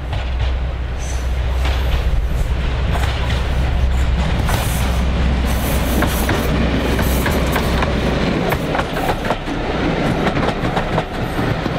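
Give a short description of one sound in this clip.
Train wheels clatter and squeal on the rails as the carriages roll past.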